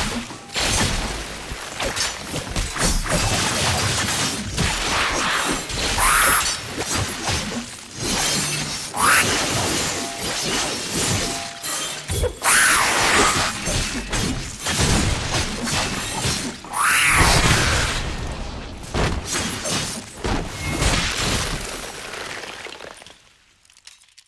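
Blades slash and clang again and again in a fast fight.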